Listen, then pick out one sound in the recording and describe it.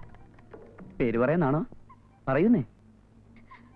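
A young man speaks with feeling, in drawn-out words, close by.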